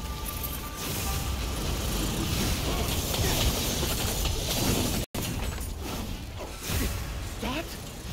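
Fire roars and crackles in bursts.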